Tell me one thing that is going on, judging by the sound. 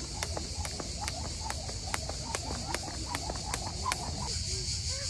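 A jump rope slaps the ground in a quick, steady rhythm.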